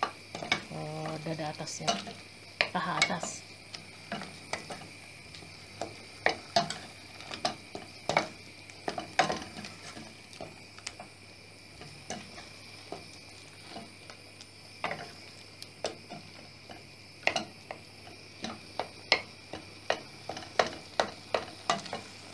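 A wooden spoon scrapes and knocks against a metal pot while stirring.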